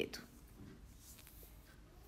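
Soft bread tears apart by hand.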